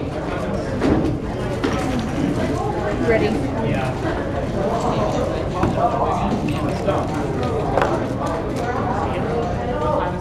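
A plastic twisty puzzle clicks as it is turned rapidly by hand.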